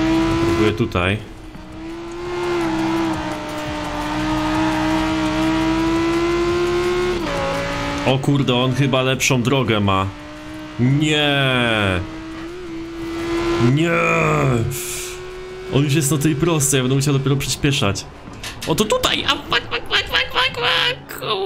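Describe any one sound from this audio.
Tyres screech while the car slides through corners.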